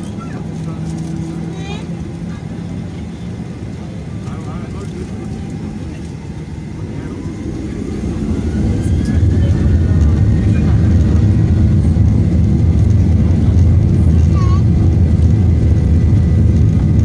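Jet engines roar steadily inside an airliner cabin, growing louder as it speeds up.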